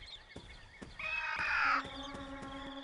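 A dinosaur lets out a cry.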